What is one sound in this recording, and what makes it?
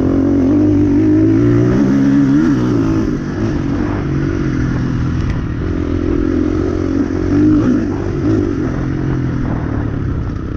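A dirt bike engine revs and drones up close, rising and falling in pitch.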